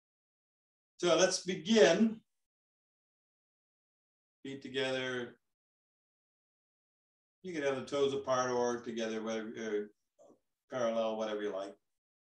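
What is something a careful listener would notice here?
An elderly man speaks calmly in short phrases with pauses, close to a microphone.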